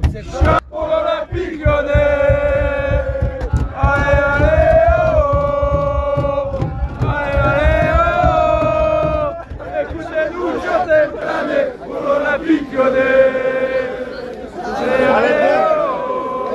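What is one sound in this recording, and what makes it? A large crowd of fans chants and sings loudly in unison outdoors.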